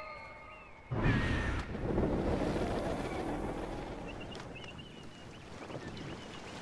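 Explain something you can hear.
Water laps against a boat.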